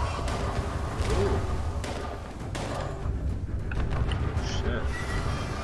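Explosions and gunfire boom from a video game.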